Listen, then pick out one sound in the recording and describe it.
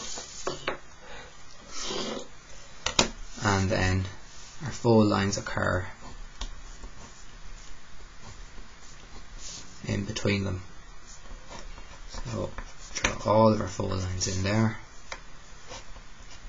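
A plastic set square slides and taps on paper.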